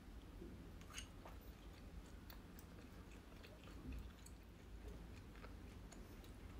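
A young woman chews food with wet, crunchy sounds close to a microphone.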